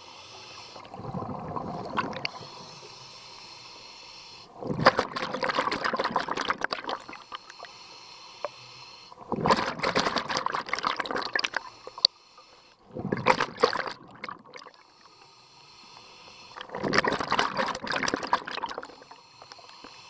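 A diver breathes out through a regulator, with loud bursts of bubbles.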